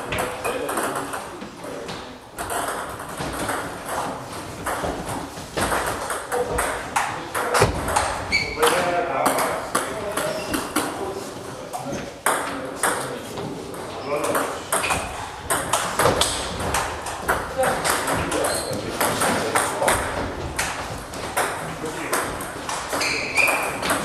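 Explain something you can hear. A ping-pong ball clicks rapidly back and forth on paddles and a table.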